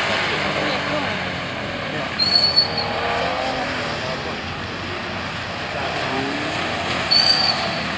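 Tyres hiss and spray through standing water.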